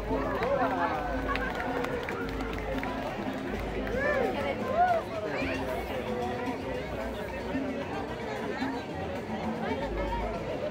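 A band plays lively dance music outdoors.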